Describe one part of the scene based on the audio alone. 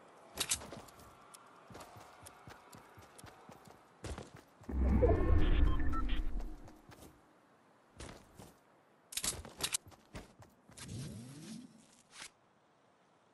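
Quick footsteps patter across grass and dirt.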